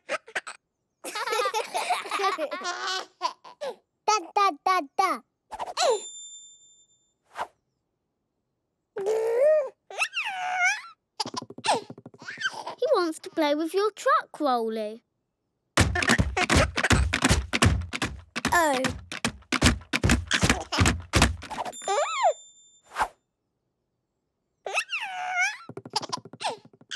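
A small child chatters and laughs with animation, close by.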